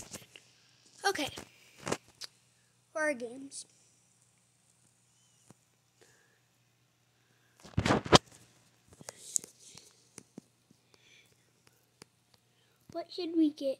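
A young child talks with animation close to a microphone.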